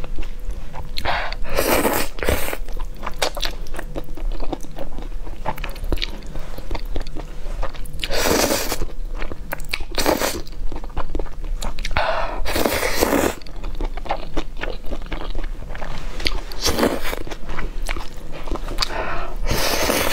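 A woman slurps noodles close to the microphone.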